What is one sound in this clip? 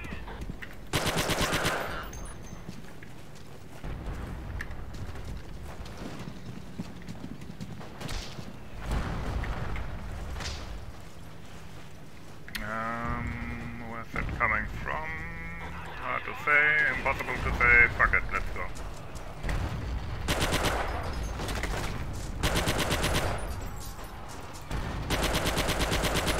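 A submachine gun fires rapid bursts at close range.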